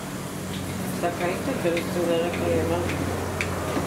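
An elderly woman speaks briefly and calmly nearby.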